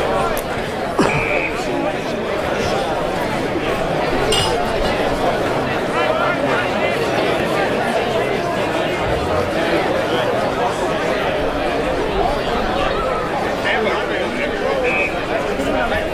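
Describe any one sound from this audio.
An umpire's whistle blows sharply.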